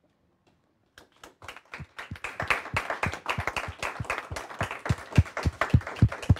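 A small group of people clap their hands.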